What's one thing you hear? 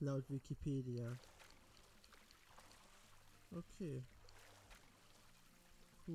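Water splashes softly as a swimmer paddles.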